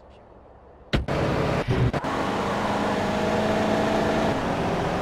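A car engine starts and runs steadily.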